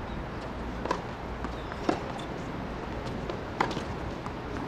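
A tennis ball bounces sharply on a hard court.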